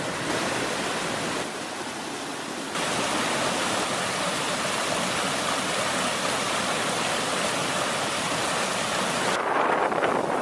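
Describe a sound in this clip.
A small waterfall splashes steadily into a pool.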